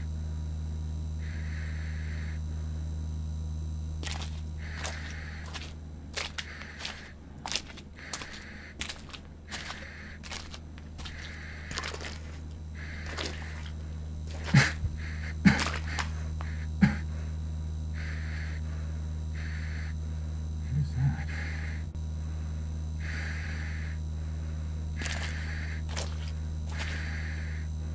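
Fluorescent lights hum steadily.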